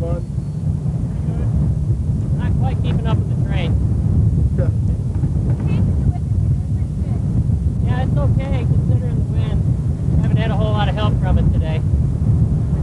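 A man talks over the wind.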